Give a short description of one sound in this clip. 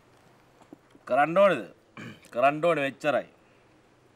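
A middle-aged man speaks into a phone in a deep voice.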